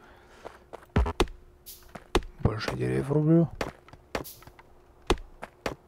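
An axe chops at a tree with repeated knocks.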